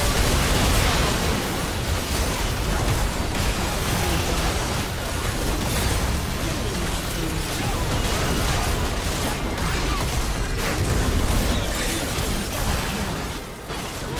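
Game spells and attacks crash and blast in a fierce battle.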